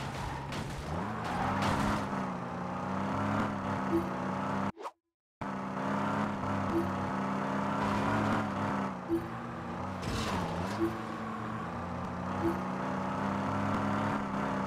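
A car engine hums steadily, rising and falling in pitch as it speeds up and shifts gears.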